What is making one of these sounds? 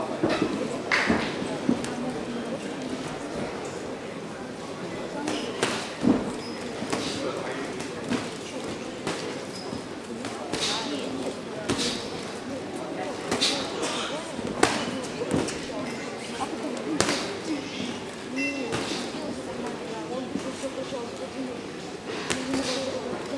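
Gloves thud as boxers trade punches.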